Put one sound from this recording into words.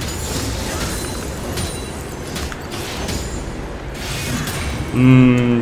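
Game sound effects of fighting clash and zap.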